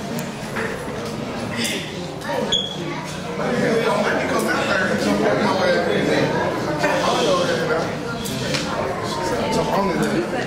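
A man speaks steadily through a microphone and loudspeakers in an echoing hall.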